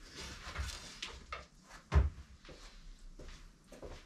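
A person's footsteps walk away on a hard floor.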